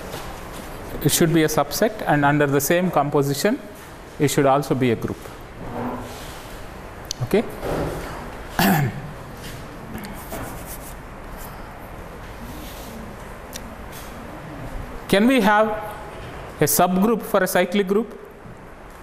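A man speaks calmly into a clip-on microphone, explaining.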